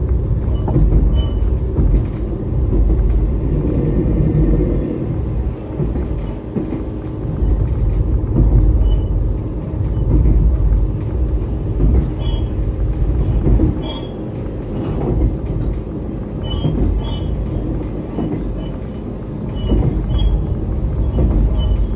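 A train engine rumbles steadily as the train gathers speed.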